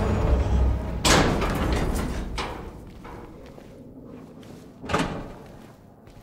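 Footsteps thud slowly on a hard floor in a quiet, echoing space.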